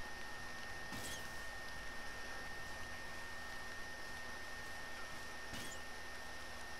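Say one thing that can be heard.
A bow string twangs as an arrow is shot.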